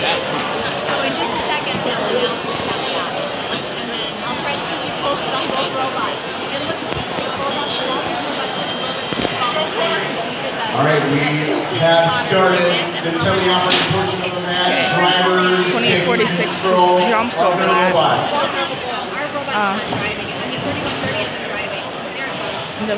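A crowd of people chatters loudly in a large echoing hall.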